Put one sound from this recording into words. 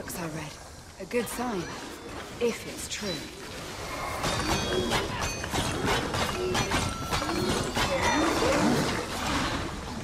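Monsters shriek and screech in pain.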